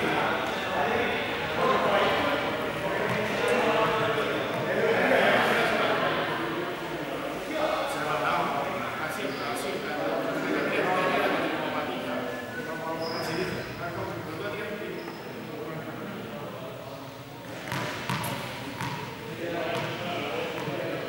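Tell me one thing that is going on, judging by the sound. Two young men talk at a distance in a large echoing hall.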